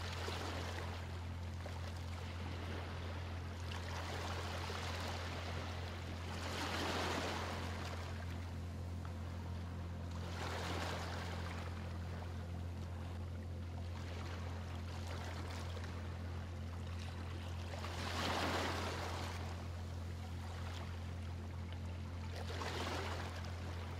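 Small waves gently wash over a pebbly shore in soft, rising and falling swells.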